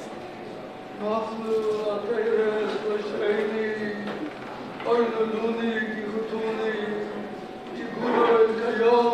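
An elderly man chants into a microphone in a large echoing hall.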